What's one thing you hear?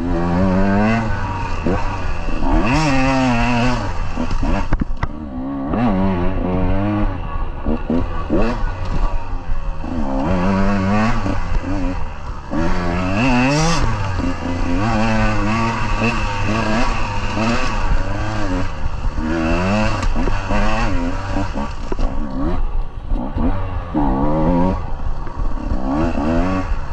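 Tyres crunch over dry leaves.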